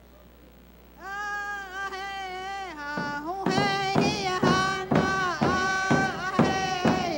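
An elderly woman sings into a microphone.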